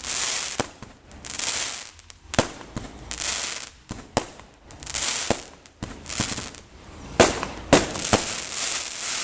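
Fireworks bang and pop in quick bursts.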